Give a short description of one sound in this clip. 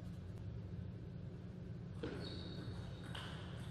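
A ping pong ball clicks back and forth off paddles and a table.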